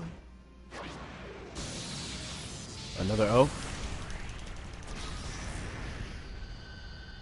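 Energy blasts crackle and roar.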